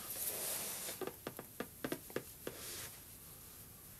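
A man breathes in and out slowly and deeply, close by.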